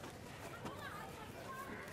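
Soil rustles as a hand scoops it from a basket.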